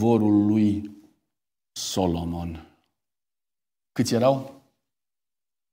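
A middle-aged man speaks slowly and deliberately through a microphone, with pauses between phrases, in a reverberant hall.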